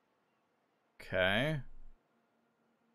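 A young man makes a short, drawn-out exclamation close to a microphone.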